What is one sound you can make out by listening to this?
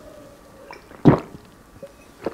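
A man sets a glass down on a wooden board with a knock.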